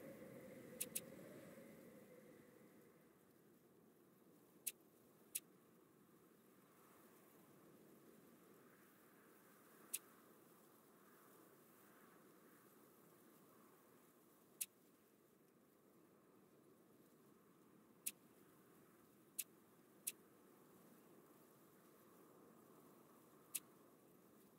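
Short sharp clicks sound now and then.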